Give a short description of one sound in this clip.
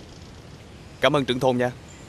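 A young man speaks briefly, close by.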